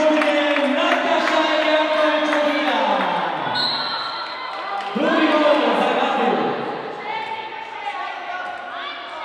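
A crowd of spectators chants and cheers loudly in a large echoing hall.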